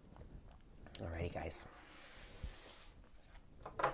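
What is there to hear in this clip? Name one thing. A ceramic mug is set down on a table with a light knock.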